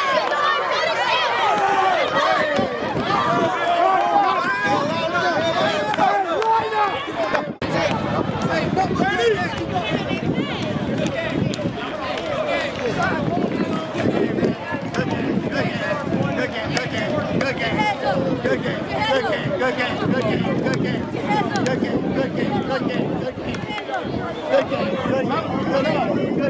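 A crowd of children and adults chatter and shout outdoors.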